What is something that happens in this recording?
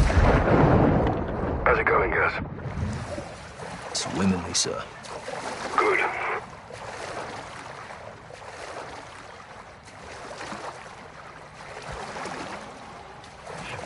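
Water swishes and laps as someone swims.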